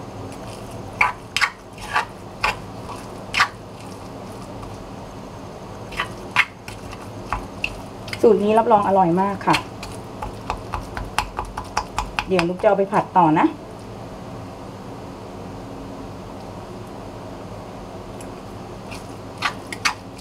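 A metal spoon clinks and scrapes against a stone mortar.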